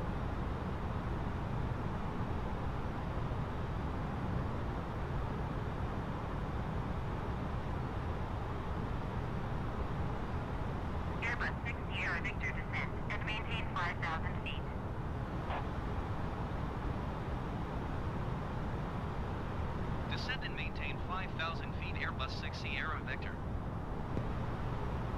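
Jet engines drone in a steady, low rumble.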